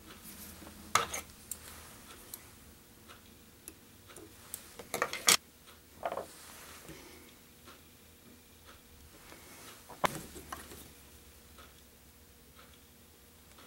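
Fingers tap and rustle close by, with small sharp clicks.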